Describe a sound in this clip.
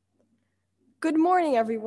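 A young woman sings loudly close to a microphone.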